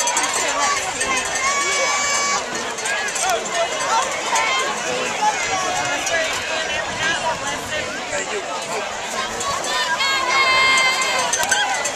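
A large crowd cheers and chatters in an open stadium.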